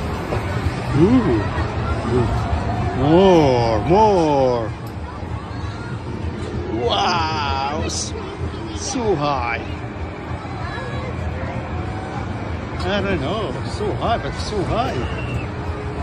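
Children shriek and call out in the distance.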